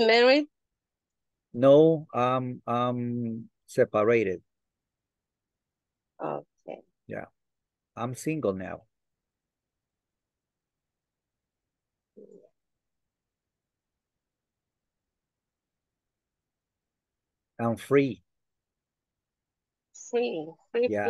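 A man talks over an online call in short bursts with pauses.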